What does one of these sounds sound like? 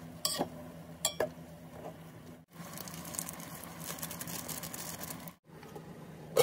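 Water bubbles and boils in a pot.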